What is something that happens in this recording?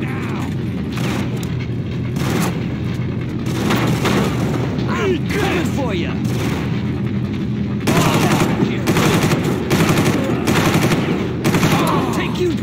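A rifle fires bursts of loud gunshots.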